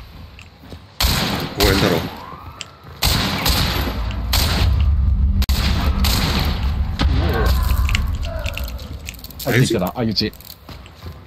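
Gunshots ring out loudly several times.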